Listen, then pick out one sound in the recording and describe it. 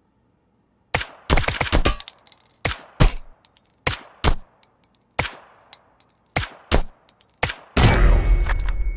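A rifle fires loud, sharp shots, one after another.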